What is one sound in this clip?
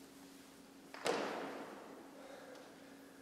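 A metal hoop clatters onto a hard floor and rings out in a large echoing hall.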